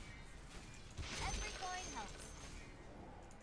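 A magic beam fires with a sharp, crackling whoosh.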